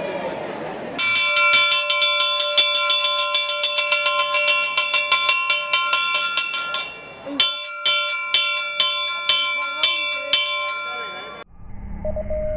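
A bell rings loudly and repeatedly, clanging fast.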